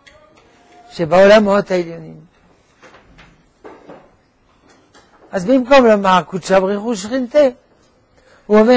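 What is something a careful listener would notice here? An elderly man speaks with animation into a close microphone, with pauses between phrases.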